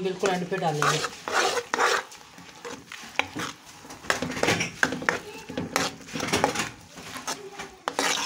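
Hands squish and rustle through food in a bowl.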